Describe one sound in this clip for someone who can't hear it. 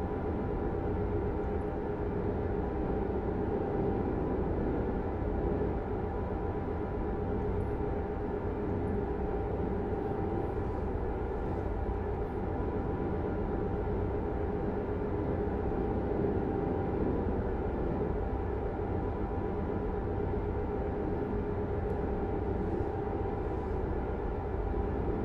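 Tyres roll on a highway with a steady rumble.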